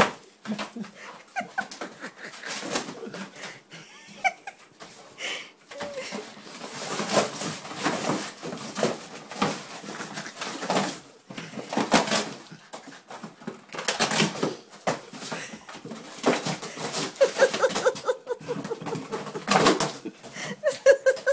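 A dog tears and rips cardboard.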